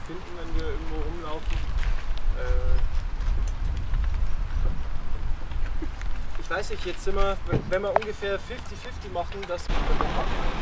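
A man speaks calmly to a small group outdoors.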